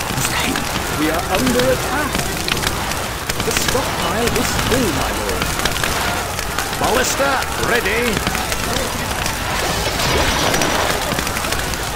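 Heavy stones crash into walls.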